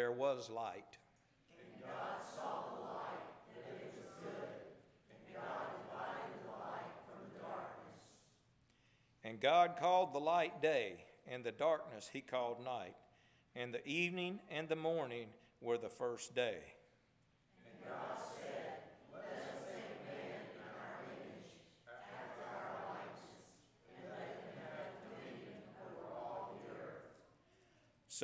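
A man speaks steadily through a microphone in an echoing hall.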